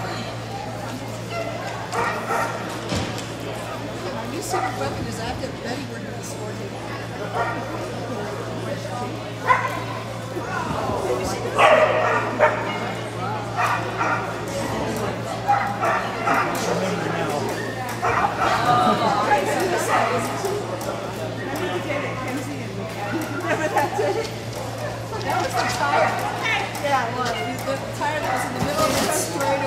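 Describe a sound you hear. A woman calls out commands to a dog in a large echoing hall.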